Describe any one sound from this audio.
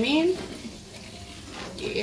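A spoon stirs soup in a metal pot.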